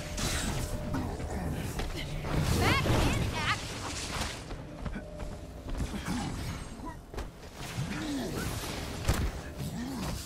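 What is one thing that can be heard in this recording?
Laser beams hum and buzz.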